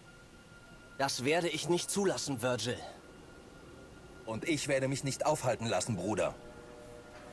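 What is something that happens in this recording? A second young man answers calmly and coldly, close by.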